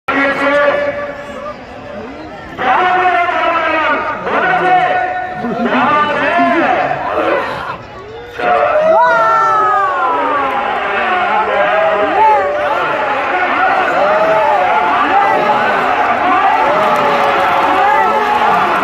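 A large outdoor crowd murmurs and cheers.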